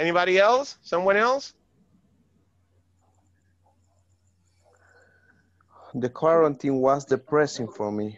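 A man speaks animatedly over an online call, with a pause between phrases.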